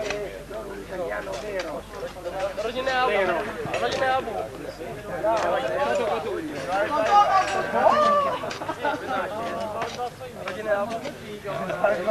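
Shovels scrape and chop into sandy soil.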